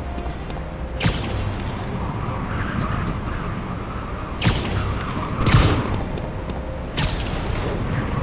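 Loud whooshes sweep past.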